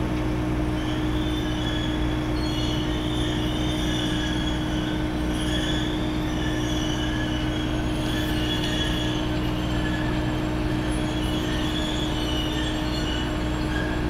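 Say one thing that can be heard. A machine on rails creaks and squeals as it moves slowly forward.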